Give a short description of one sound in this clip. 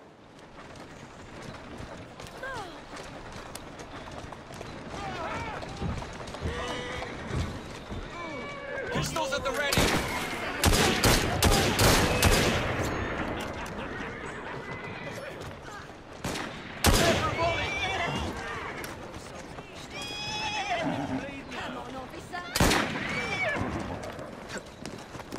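Carriage wheels rumble over cobblestones.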